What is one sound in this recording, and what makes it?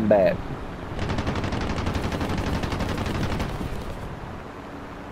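Aircraft machine guns fire a long rapid burst.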